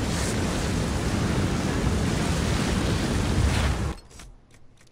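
Flames roar and crackle loudly.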